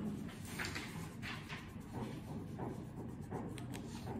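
A crayon scratches and rubs across paper.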